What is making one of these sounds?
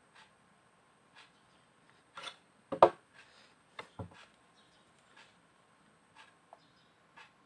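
A paintbrush dabs and scrapes thick paint on a canvas.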